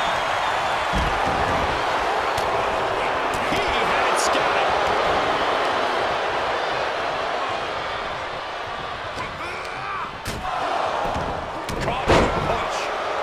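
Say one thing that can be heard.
Bodies slam onto a wrestling ring mat.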